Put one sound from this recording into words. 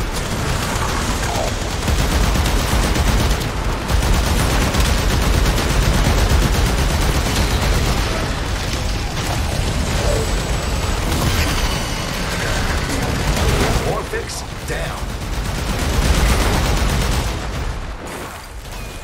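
Guns fire rapidly in a loud, noisy battle.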